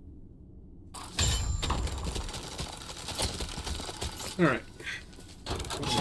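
Game sound effects clatter and whoosh during play.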